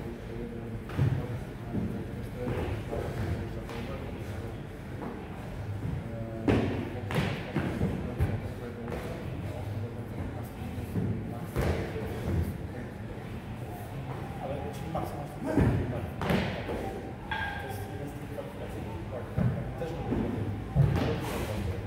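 Feet land with thuds on wooden boxes, repeatedly.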